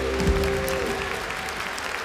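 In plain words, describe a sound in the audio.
A choir and orchestra finish on a held chord that rings out in a large echoing hall.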